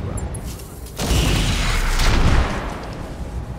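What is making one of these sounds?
A beam weapon fires with a loud crackling blast.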